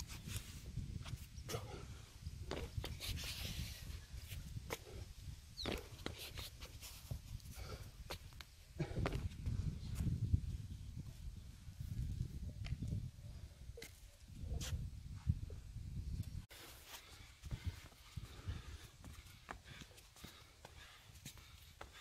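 Shoes thud and scuff on concrete as a man jumps and lands.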